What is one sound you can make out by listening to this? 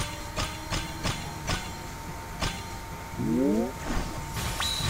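Short chimes ring out quickly one after another as a combo builds.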